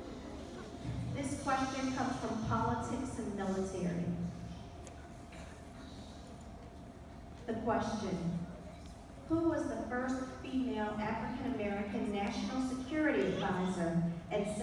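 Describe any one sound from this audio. A child speaks into a microphone, heard through loudspeakers in a large hall.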